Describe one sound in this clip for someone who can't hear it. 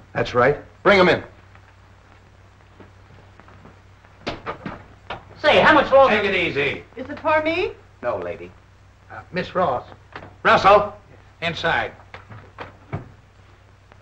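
Men talk in turn, close by.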